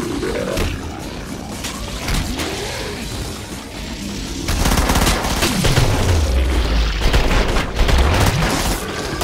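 A rifle fires rapid bursts that echo.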